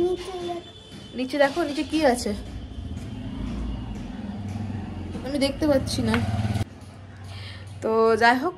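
A young boy speaks and laughs nearby.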